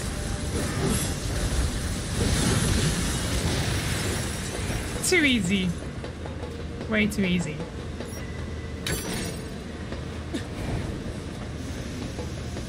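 A young woman talks quietly into a headset microphone.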